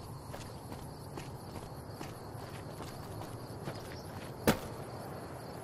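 Footsteps run across concrete.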